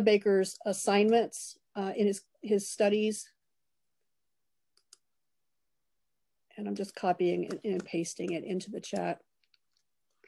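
A woman speaks calmly through an online call, pausing between phrases.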